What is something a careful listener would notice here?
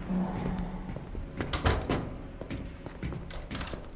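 Footsteps clang down metal stairs.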